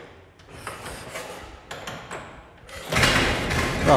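A man turns a crank handle on an old car engine.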